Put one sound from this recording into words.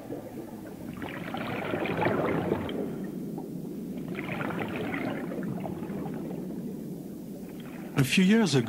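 Scuba divers breathe out through regulators underwater, releasing rushing, bubbling gurgles.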